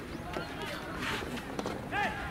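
Players shout outdoors.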